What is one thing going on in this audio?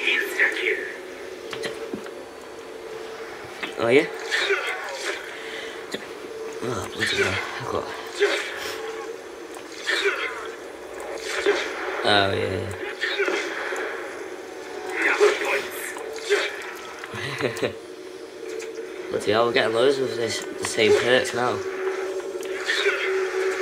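Zombies snarl and groan close by.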